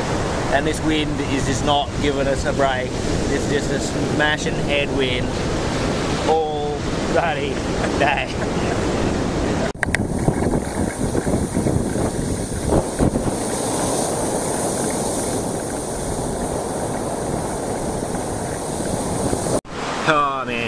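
Waves wash onto the shore.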